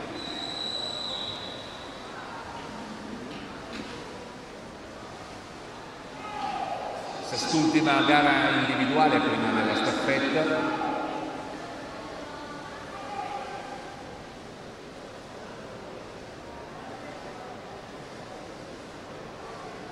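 Swimmers splash steadily through the water in a large echoing hall.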